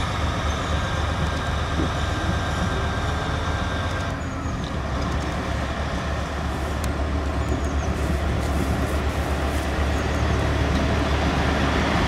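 A diesel locomotive rolls closer along the track.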